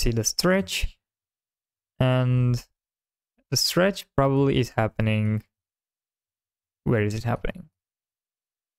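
A young man speaks calmly and close into a microphone, in short bursts with pauses.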